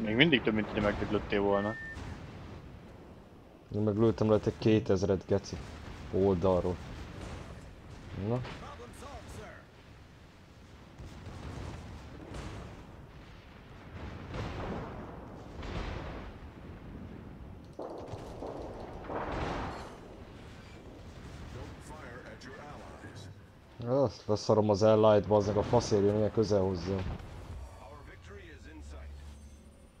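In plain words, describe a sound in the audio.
Heavy naval guns fire with deep booms.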